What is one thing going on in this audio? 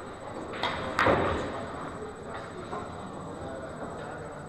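Pool balls roll and knock against each other and the cushions.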